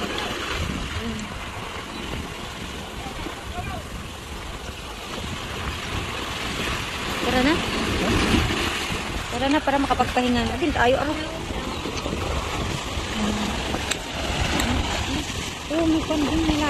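Waves splash and wash against a concrete walkway.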